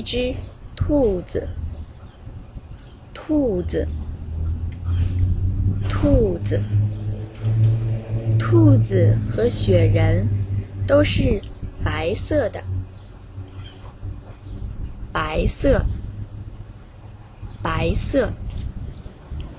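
A young woman talks animatedly close by.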